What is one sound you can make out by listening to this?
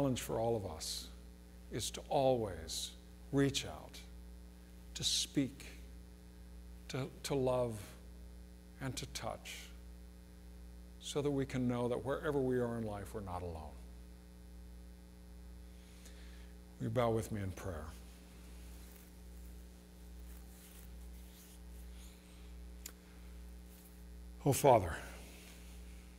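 A man speaks slowly and with pauses into a microphone.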